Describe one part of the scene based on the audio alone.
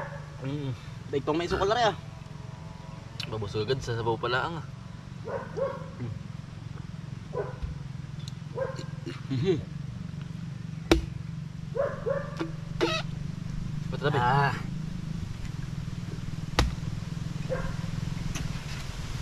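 A man talks casually outdoors, close by.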